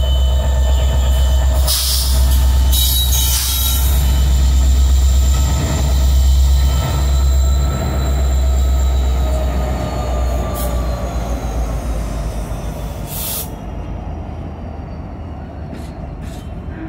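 Diesel locomotive engines rumble loudly close by and slowly fade.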